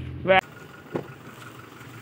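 A car door handle clicks open.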